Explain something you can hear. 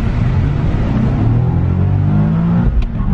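A car engine revs up, rising in pitch.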